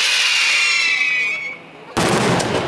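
Fireworks shells whistle as they rise.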